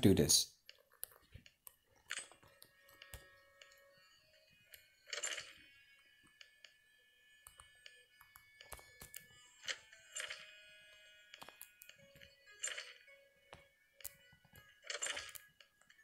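Short game interface clicks and rustles sound now and then.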